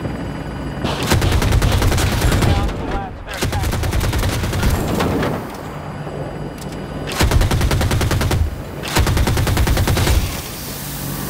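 A heavy cannon fires in rapid bursts.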